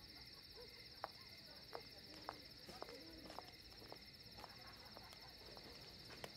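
High heels click on a hard floor as women walk away.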